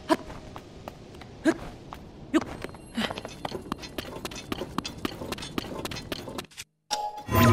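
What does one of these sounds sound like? Footsteps crunch quickly over sandy ground.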